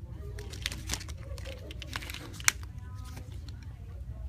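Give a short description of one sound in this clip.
A paper tag crinkles and rustles between fingers.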